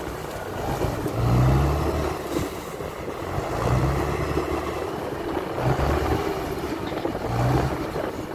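A tractor engine rumbles and revs in low pulses nearby.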